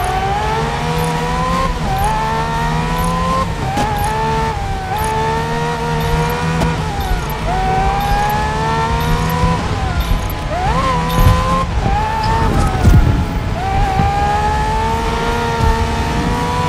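A racing car engine whines loudly, rising in pitch and dropping again with each gear change.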